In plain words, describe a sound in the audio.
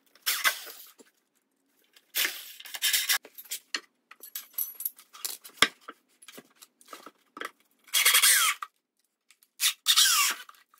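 A cordless drill drives a screw into wood.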